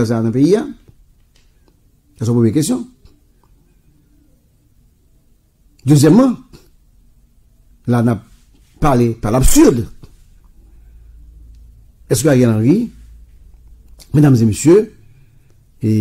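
A man speaks with animation through a microphone, in short bursts with pauses.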